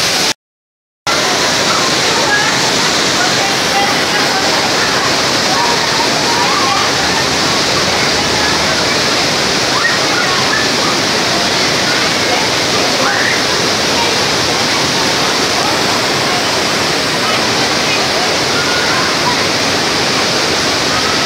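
A distant crowd chatters and calls out outdoors.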